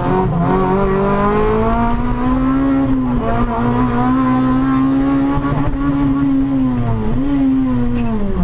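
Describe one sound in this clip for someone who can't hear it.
A car engine roars loudly, revving up and down through the gears.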